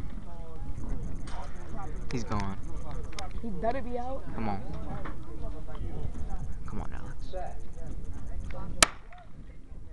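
A crowd of spectators chatters outdoors in wind.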